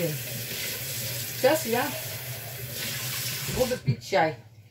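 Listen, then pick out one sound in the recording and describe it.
Water runs from a tap.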